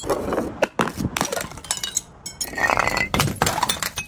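A glass bottle clunks and clatters down stone steps.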